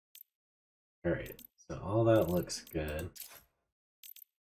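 A man speaks briefly and casually, close to a microphone.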